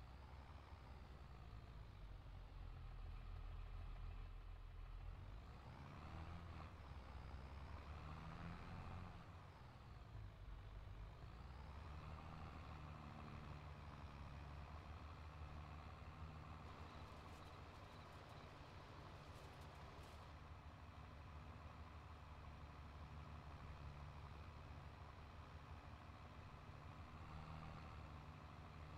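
A tractor engine rumbles steadily, its pitch rising and falling with the throttle.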